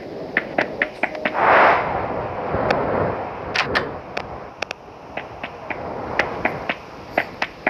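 Light footsteps tap in a quick, uneven rhythm.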